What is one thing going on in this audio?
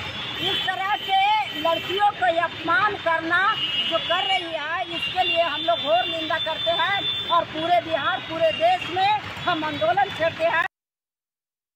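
A middle-aged woman speaks loudly and forcefully, close by.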